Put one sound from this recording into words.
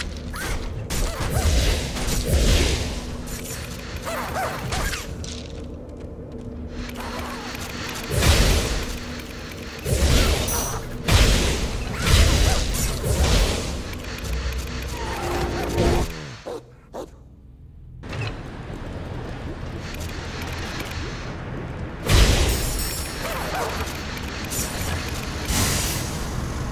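Blades clash and strike in quick bursts of fighting.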